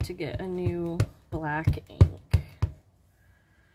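A rubber stamp taps repeatedly on an ink pad.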